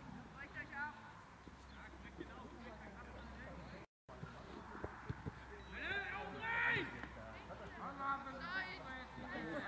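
Young players shout to each other outdoors on an open field.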